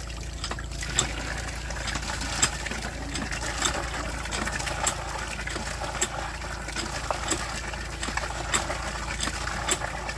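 A hand pump creaks and clanks rhythmically as it is worked.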